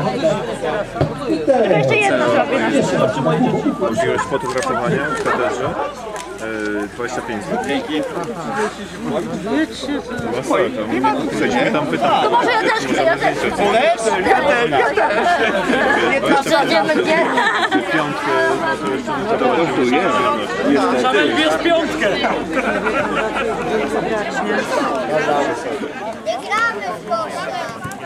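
Several men and women chatter and laugh close by, outdoors.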